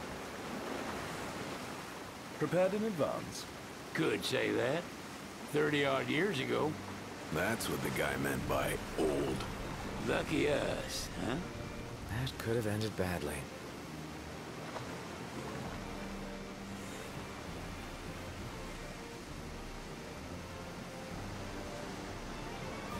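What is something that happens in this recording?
Water rushes and splashes against a speeding boat's hull.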